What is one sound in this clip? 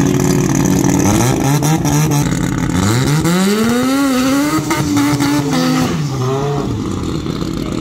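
Loud drag racing engines roar and rise sharply in pitch.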